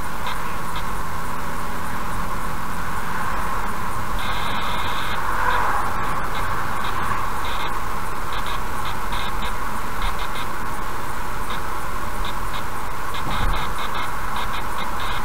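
A car drives steadily along a highway with a constant road rumble.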